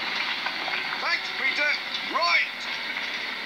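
A man speaks with animation, heard through a television speaker.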